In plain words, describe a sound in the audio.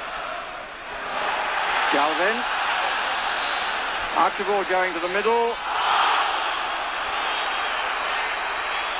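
A stadium crowd roars loudly.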